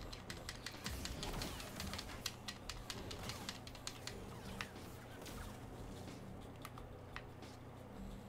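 Energy blades clash with sharp crackling hits.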